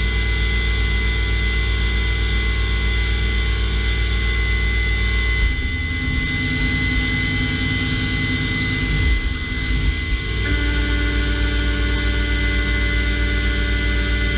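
Coolant sprays and hisses against metal.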